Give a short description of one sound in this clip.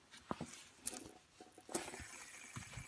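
Fingers click and tap a fidget spinner.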